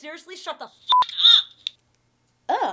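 A voice speaks faintly through a phone.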